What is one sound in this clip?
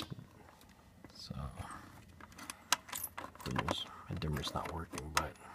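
A button clicks several times.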